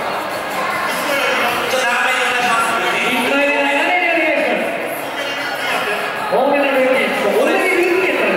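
A second man talks loudly through a headset microphone over loudspeakers.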